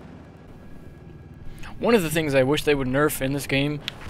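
A helicopter's rotor whirs overhead.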